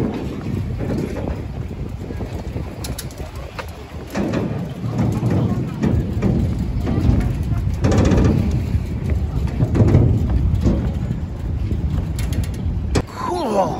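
Bicycles rattle as they are wheeled down a ramp.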